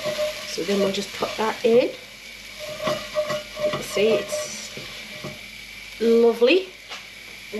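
A wooden spoon stirs and scrapes thick food in a heavy pot.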